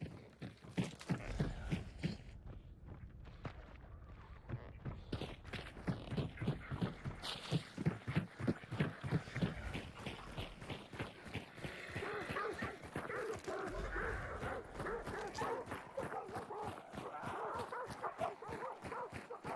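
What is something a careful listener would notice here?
Footsteps thud steadily on wooden boards and then crunch on a gravel road.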